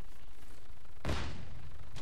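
A rifle fires a single loud shot that rings out and fades.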